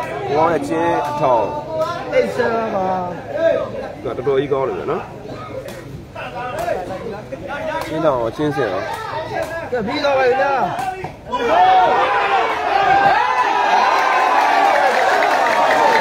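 A crowd of onlookers murmurs and then cheers loudly.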